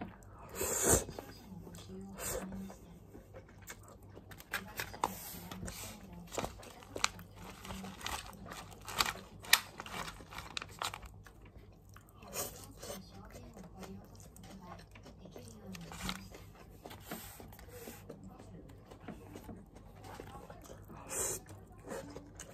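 A man slurps noodles close by.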